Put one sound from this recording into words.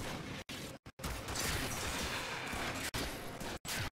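Fiery blasts roar and crackle in a burst of combat.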